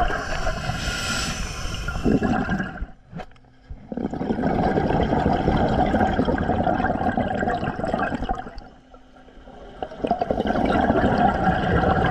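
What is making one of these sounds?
A diver's breathing gear gurgles, with bursts of bubbles rushing underwater.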